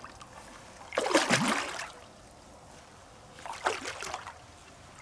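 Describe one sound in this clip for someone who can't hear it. Hands splash briefly in water.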